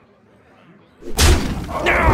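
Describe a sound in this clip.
A game's magical attack bursts with a loud whooshing impact.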